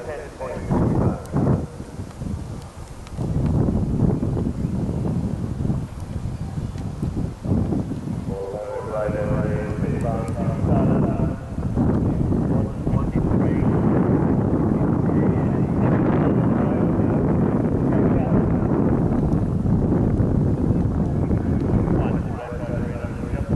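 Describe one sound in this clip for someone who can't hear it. A horse gallops, its hooves thudding on grass.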